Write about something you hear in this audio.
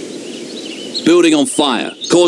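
A man exclaims loudly close to a microphone.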